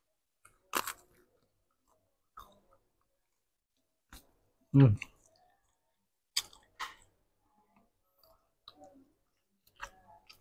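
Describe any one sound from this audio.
A man bites and chews a crepe softly.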